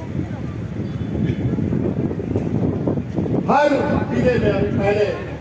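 A man speaks loudly through a microphone and loudspeakers outdoors, with echo.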